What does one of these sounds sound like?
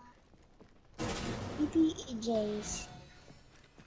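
A heavy wooden door creaks open.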